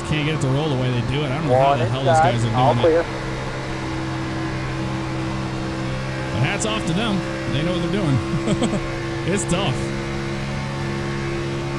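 Other race cars roar past close by.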